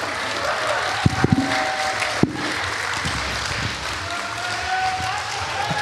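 A middle-aged man speaks into a microphone, heard through loudspeakers in a large echoing space.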